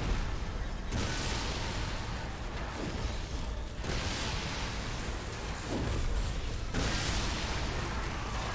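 Pillars of fire roar and crackle loudly.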